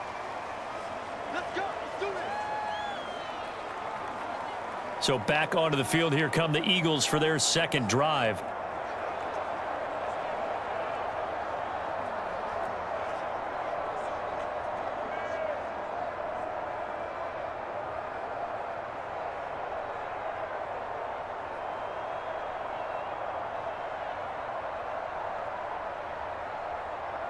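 A large stadium crowd murmurs steadily.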